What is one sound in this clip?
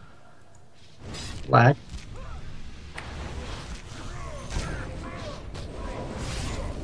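Magic spells crackle and whoosh.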